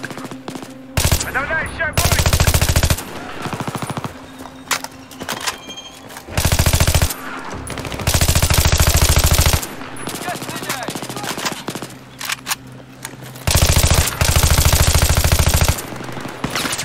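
A rifle fires in rapid bursts of gunfire.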